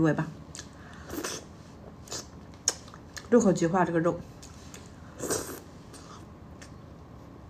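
A young woman chews and slurps food close to a microphone.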